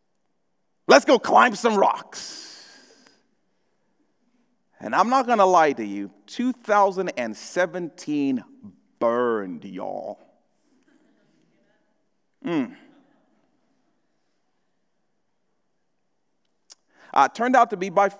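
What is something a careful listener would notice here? A young man speaks calmly through a microphone, pausing between phrases.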